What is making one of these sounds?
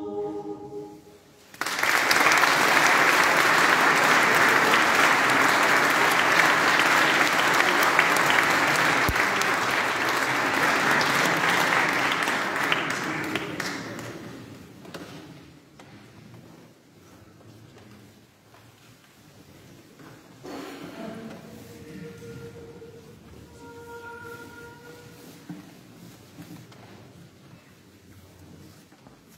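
A choir of women sings in a large echoing hall.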